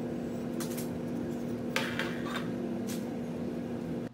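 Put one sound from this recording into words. A metal rod slides and clinks inside a tube.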